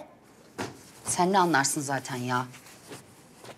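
A second woman answers calmly close by.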